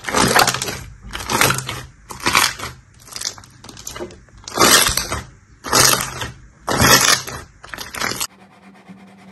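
Slime crackles and pops loudly as hands squeeze it.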